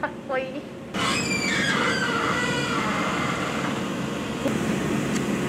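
Machinery hums steadily in a large room.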